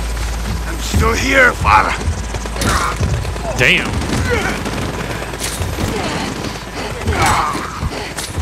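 A man groans and grunts in pain up close.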